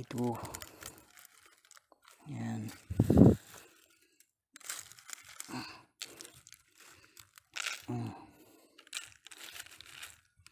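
Dry palm leaves rustle and crackle as a hand pushes through them.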